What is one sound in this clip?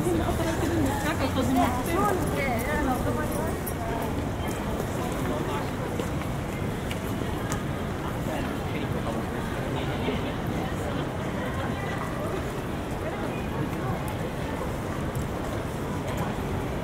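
Footsteps patter on pavement.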